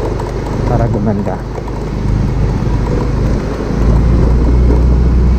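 A scooter engine hums steadily at low speed.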